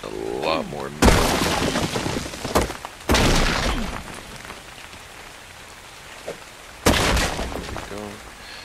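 A pickaxe strikes rock with heavy crunching blows.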